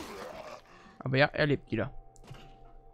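A zombie groans and snarls nearby.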